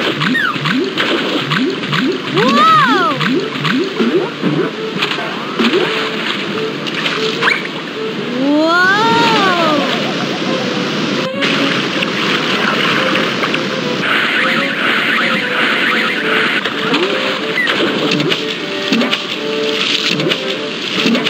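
Rushing water roars steadily.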